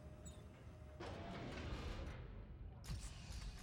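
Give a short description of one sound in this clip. A heavy metal door slides open with a rumbling hiss.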